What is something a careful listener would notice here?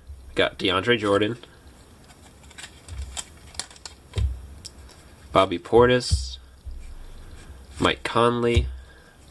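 Cardboard trading cards slide and flick against each other as they are shuffled.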